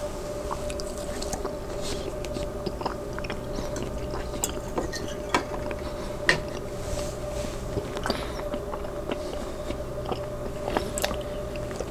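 A man chews food close to a microphone.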